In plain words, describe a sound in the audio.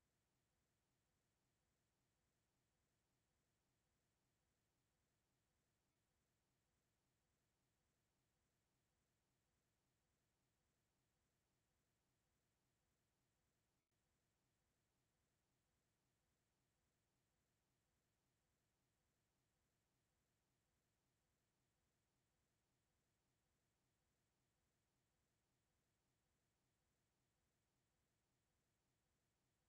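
A clock ticks steadily and very faintly.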